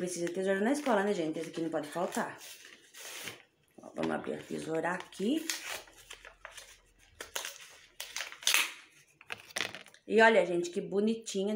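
Plastic tape crinkles and rustles.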